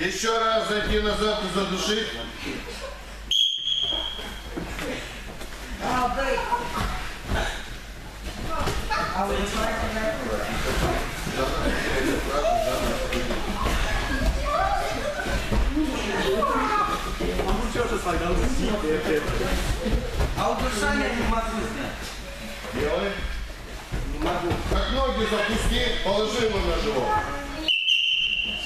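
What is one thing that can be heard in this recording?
Boys talk and call out in a large echoing hall.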